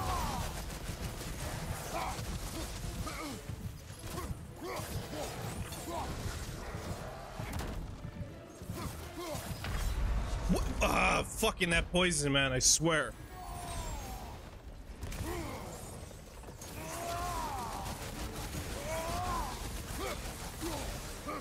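Flames burst with a roaring whoosh.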